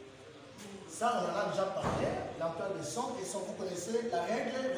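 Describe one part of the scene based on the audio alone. A man speaks clearly and steadily nearby.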